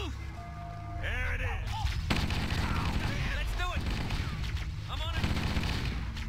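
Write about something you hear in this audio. Sharp electronic zaps of energy weapons fire.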